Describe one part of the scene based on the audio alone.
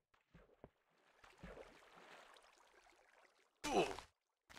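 Water splashes and swirls.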